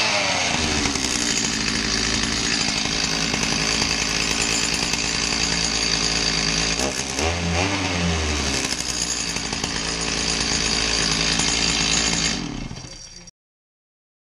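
A chainsaw engine runs loudly nearby and briefly revs up.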